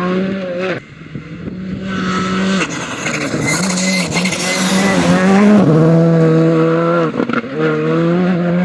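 A rally car engine roars loudly as it approaches and passes close by.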